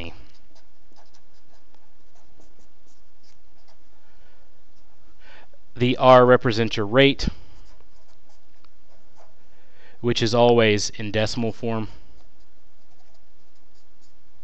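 A felt marker squeaks and scratches on paper.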